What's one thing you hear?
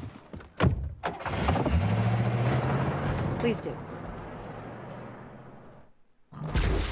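A car engine starts and rumbles, then fades away.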